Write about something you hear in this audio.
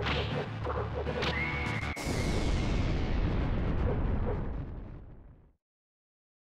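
A loud explosion roars and slowly fades.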